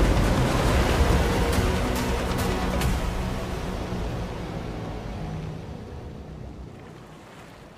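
A boat's engine chugs across choppy water.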